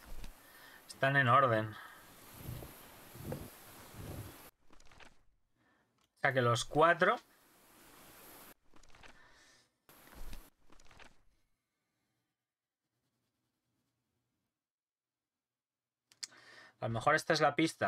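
A man speaks into a close microphone in short bursts.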